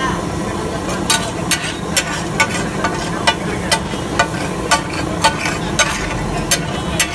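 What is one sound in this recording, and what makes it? A metal spatula clanks and scrapes rapidly against a griddle.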